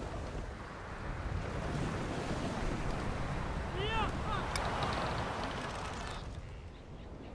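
Waves wash gently against a shore.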